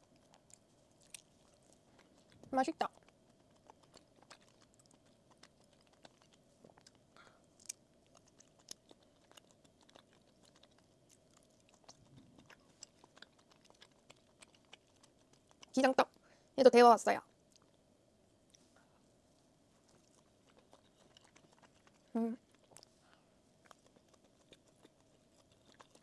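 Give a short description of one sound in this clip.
Soft chewing and mouth sounds come very close to a microphone.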